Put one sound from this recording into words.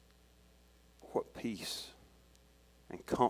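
A man speaks through a microphone in an echoing hall, in a calm, measured voice.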